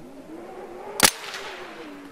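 A gunshot fires once with a sharp crack.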